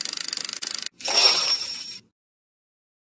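A slot game plays a short win jingle.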